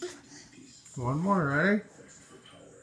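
A toddler squeals loudly through a pacifier, the pitch wavering up and down.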